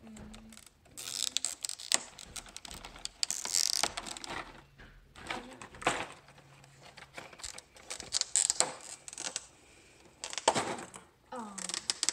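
Plastic clicks and rattles as small helmets are pulled from a case.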